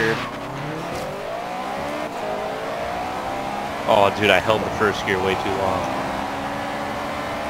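A car engine roars, its pitch climbing through the gears as it speeds up.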